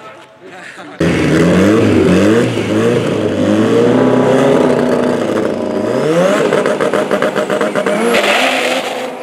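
Two car engines rumble and rev while idling.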